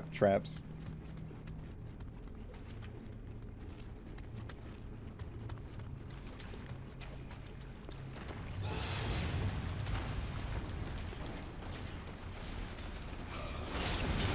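Armoured footsteps scuff across a stone floor.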